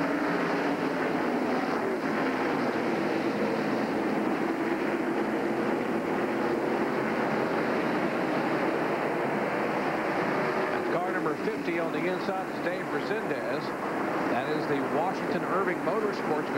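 Race car engines roar loudly as cars speed past.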